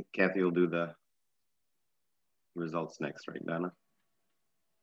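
A middle-aged man speaks calmly in short bursts, heard through an online call.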